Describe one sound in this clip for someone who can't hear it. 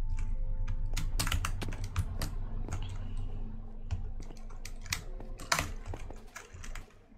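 Blocks crunch and tap in quick, uneven bursts.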